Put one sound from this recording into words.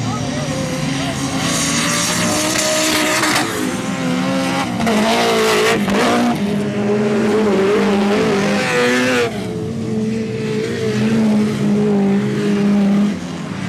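Car engines roar and rev loudly, rising and falling in pitch.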